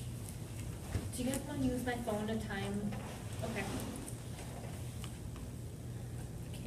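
A young woman speaks calmly from nearby.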